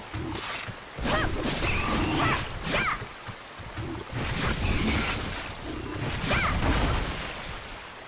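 A blade slashes into a creature with heavy wet hits.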